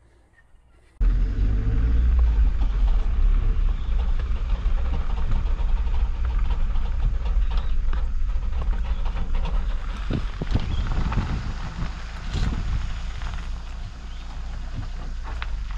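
Tyres roll over a gravel road.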